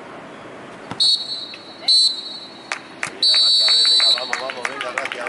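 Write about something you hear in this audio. A referee's whistle blows in short, shrill blasts.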